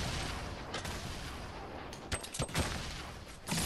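A pickaxe strikes a wall.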